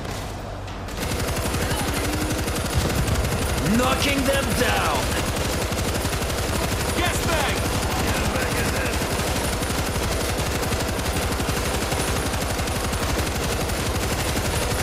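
A heavy machine gun fires long rapid bursts that echo down a tunnel.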